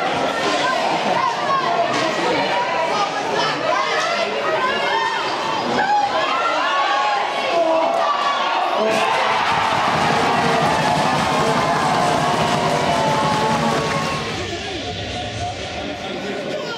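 A crowd of spectators cheers and shouts in an echoing rink.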